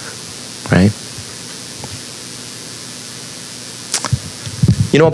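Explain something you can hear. A man speaks into a microphone in a large hall, pausing between phrases.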